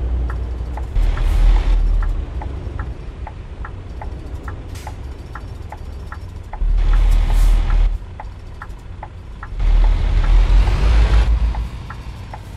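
Vehicles whoosh past loudly.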